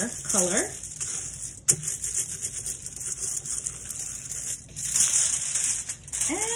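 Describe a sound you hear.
Aluminium foil crinkles and rustles under rubbing hands.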